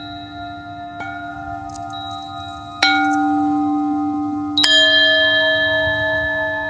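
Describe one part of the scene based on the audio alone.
Singing bowls hum with long, steady ringing tones.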